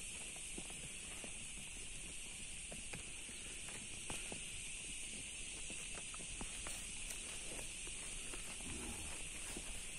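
Cows tear and munch grass close by.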